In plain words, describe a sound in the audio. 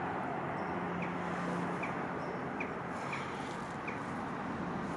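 Birds call briefly overhead.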